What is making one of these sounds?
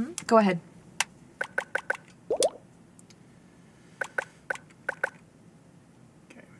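Short menu clicks tick in quick succession.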